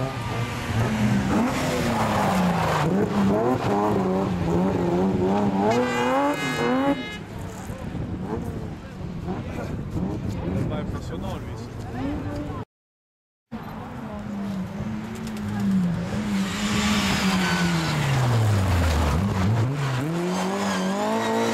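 A rally car engine roars and revs up and down as the car races past.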